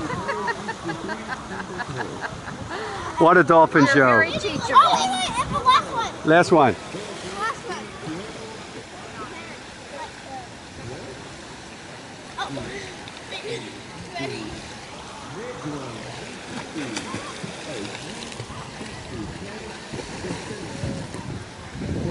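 Water splashes as swimmers kick and paddle.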